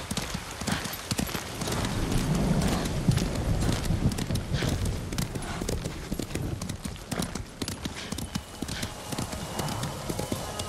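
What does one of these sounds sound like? A horse gallops with quick thudding hooves on soft ground.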